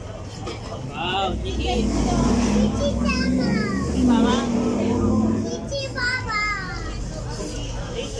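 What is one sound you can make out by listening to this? A young girl chatters in a high voice close by.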